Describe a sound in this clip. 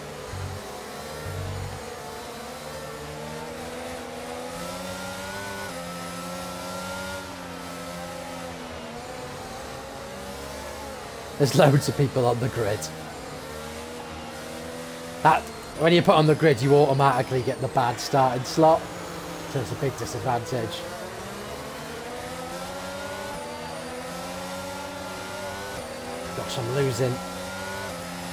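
A racing car engine hums steadily, rising and falling in pitch.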